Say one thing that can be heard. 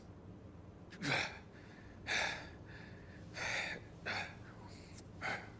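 A wounded man groans and breathes heavily.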